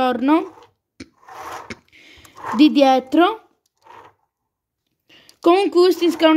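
A small plastic toy car clicks and rattles as it is handled.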